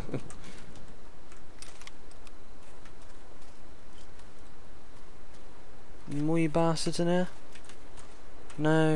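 Footsteps crunch over dry leaves.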